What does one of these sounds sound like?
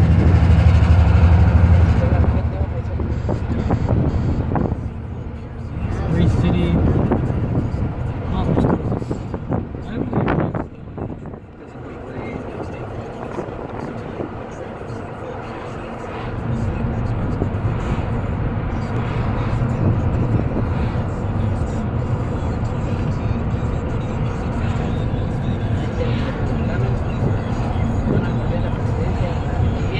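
A car engine hums steadily from inside a moving car.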